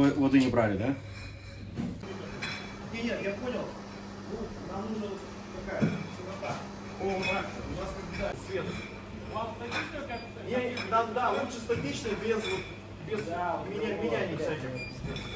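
Several men talk casually nearby.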